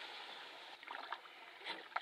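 A paddle splashes and drips in water.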